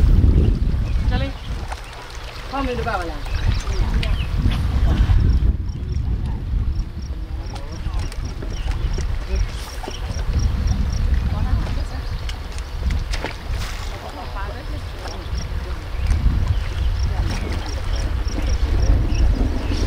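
Water laps against rocks on the shore.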